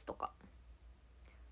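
A young woman speaks a few quick words close to the microphone.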